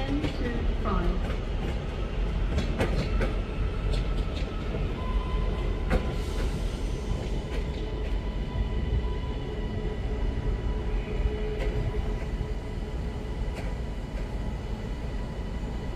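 Train wheels click and squeal on the rails.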